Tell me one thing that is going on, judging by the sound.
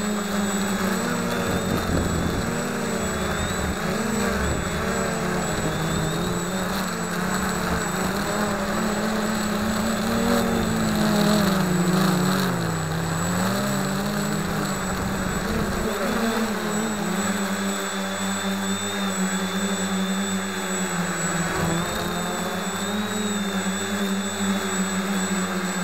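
Small electric propeller motors whine, rising and falling in pitch.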